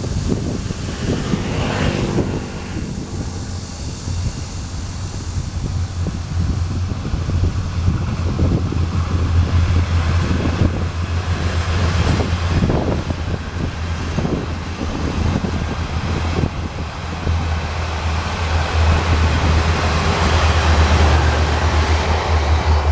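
Wind blows across open ground outdoors.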